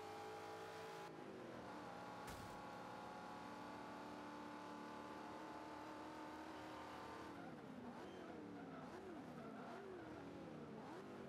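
A car engine roars at high revs, then wavers up and down.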